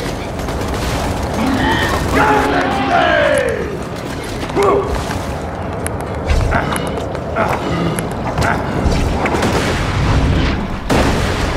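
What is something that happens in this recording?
Guns fire in short bursts, with sharp cracks and thuds.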